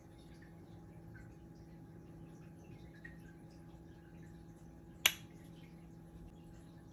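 An aquarium's pump hums steadily.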